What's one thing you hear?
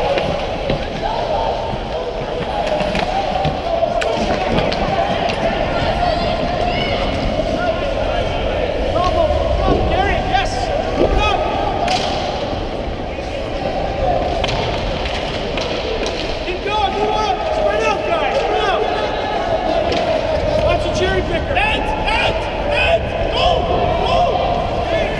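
Ice skates scrape and carve across ice close by, in a large echoing rink.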